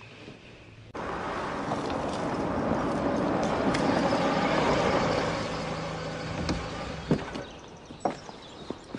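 A car engine hums as a car drives slowly past.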